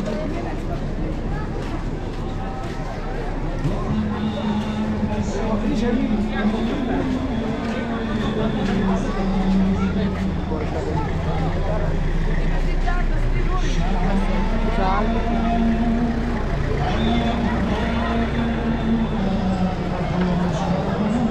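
A crowd of men and women talk and murmur outdoors.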